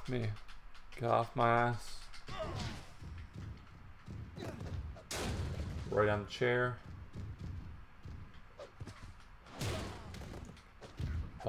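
Heavy bodies thud onto a wrestling ring mat.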